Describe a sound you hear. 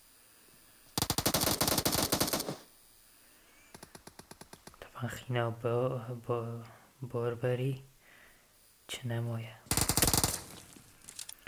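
Gunfire rattles in short rapid bursts.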